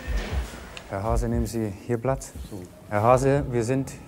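A man speaks firmly nearby.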